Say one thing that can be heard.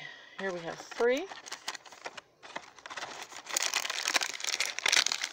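Plastic toy packaging crinkles and rustles close by.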